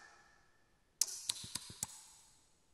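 A drummer strikes hand drums in a few quick beats.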